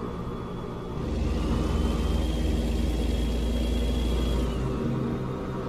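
A passing truck rushes by.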